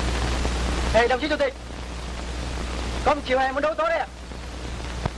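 A young man speaks loudly nearby.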